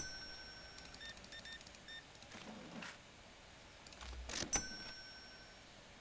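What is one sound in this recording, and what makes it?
A cash register beeps electronically.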